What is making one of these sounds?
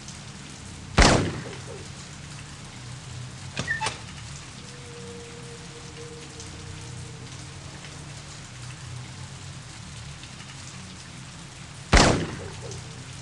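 A gunshot cracks and echoes off walls.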